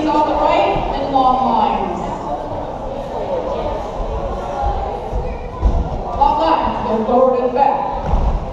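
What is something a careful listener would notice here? Feet shuffle and step on a wooden floor.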